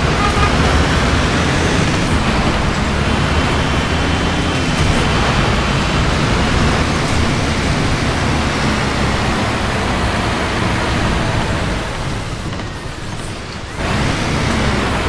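Rain patters steadily on a windscreen.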